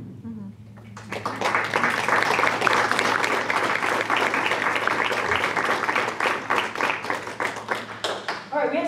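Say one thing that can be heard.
An audience claps steadily.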